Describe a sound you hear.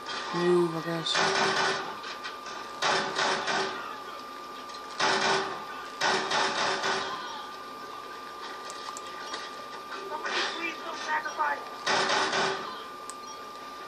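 Bursts of gunfire rattle from a video game through a television speaker.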